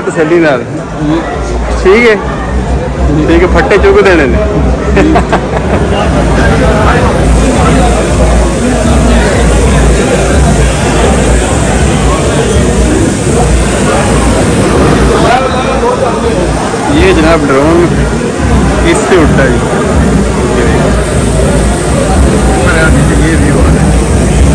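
A crowd chatters in a large room.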